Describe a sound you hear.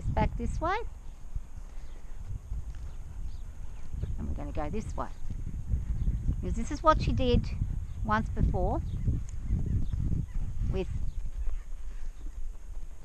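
A horse's hooves thud steadily on soft ground.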